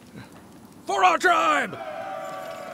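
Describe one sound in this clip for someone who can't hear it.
An elderly man shouts loudly.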